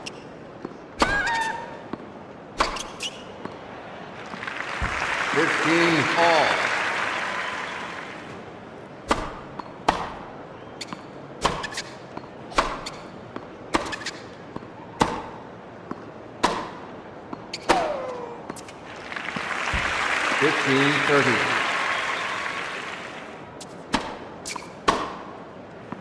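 Tennis balls are struck sharply back and forth with rackets.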